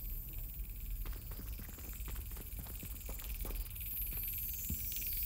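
Footsteps patter quickly on a hard stone floor.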